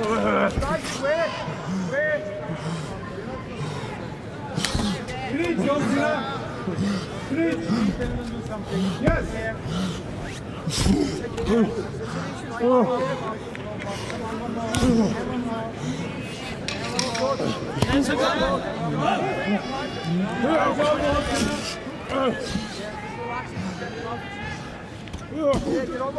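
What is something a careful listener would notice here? A large crowd cheers and shouts steadily.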